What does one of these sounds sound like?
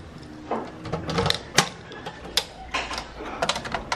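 A metal mailbox door clicks and swings open.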